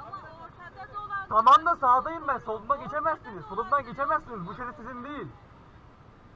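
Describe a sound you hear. A woman argues loudly nearby.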